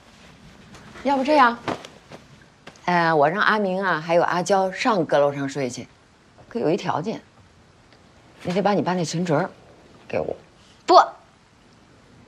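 A woman speaks nearby in an animated, pleading voice.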